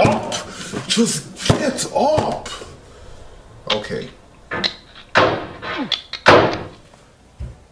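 A young man talks loudly and excitedly close to a microphone.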